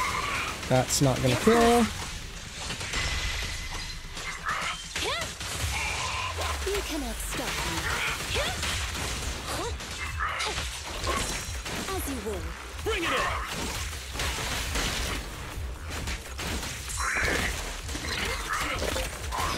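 Sword slashes and electric crackles ring out throughout a fight.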